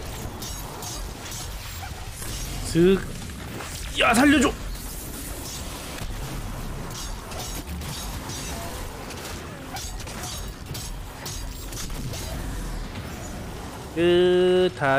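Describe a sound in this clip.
Weapons fire in rapid bursts.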